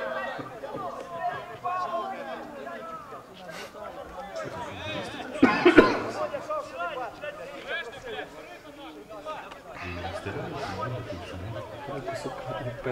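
A small crowd of spectators chatters nearby.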